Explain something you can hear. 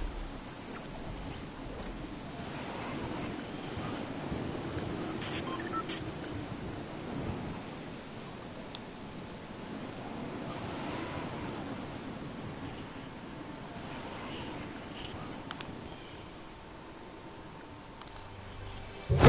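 Wind rushes steadily past a glider descending through the air.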